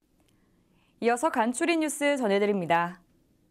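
A woman speaks clearly and calmly into a microphone, like a news presenter.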